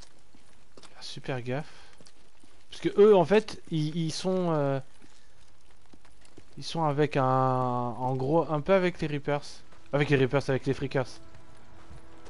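A young man talks into a headset microphone with animation, close up.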